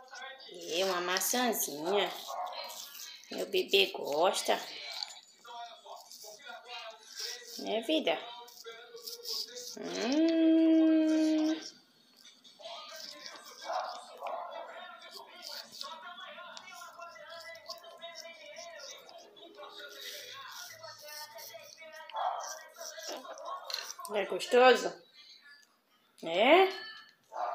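A parrot nibbles and crunches on soft fruit.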